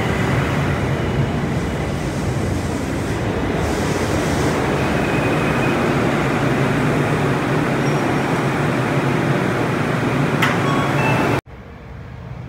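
A train rumbles loudly close by as it pulls away.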